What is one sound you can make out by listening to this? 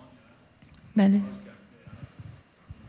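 A young woman speaks briefly into a microphone, heard over loudspeakers in a hall.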